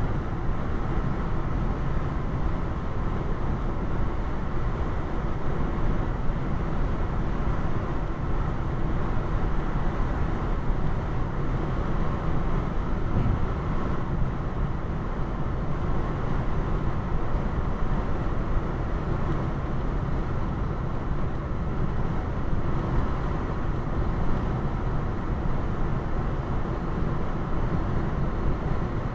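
Tyres roll steadily along a paved road inside a moving car.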